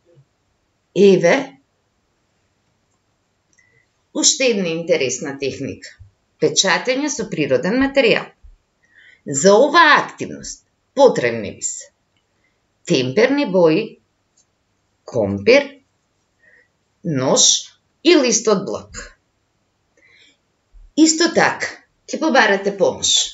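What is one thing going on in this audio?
A middle-aged woman talks calmly into a microphone, as if over an online call.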